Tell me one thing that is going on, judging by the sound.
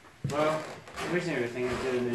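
Gear rustles as a backpack is handled.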